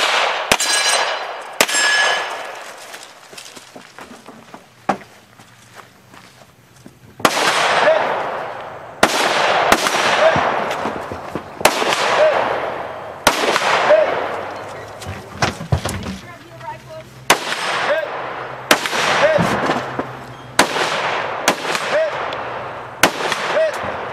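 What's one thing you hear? Gunshots crack loudly outdoors, one after another, and echo off the trees.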